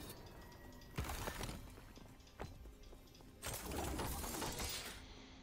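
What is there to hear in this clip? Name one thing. Game spells burst and crack with magic impacts.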